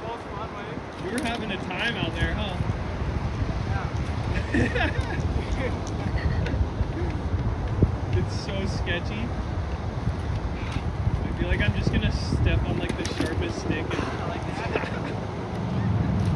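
Dry reeds crunch and snap underfoot.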